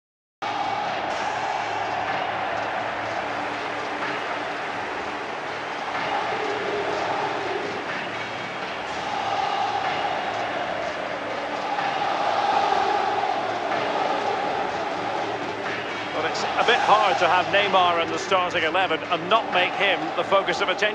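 A large crowd cheers and chants steadily in a big echoing stadium.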